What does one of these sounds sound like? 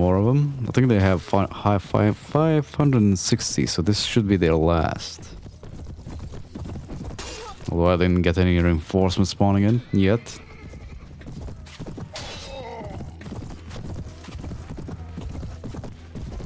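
Horse hooves pound at a gallop.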